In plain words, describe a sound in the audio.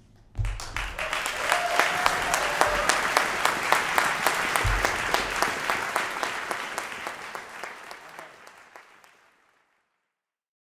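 An audience applauds in a large hall, then the applause fades away.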